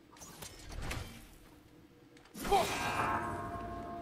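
An axe clangs against metal with a ringing strike.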